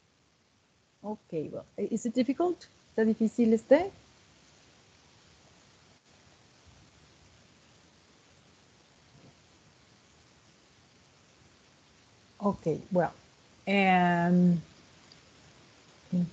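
A woman speaks through an online call, in short phrases with pauses.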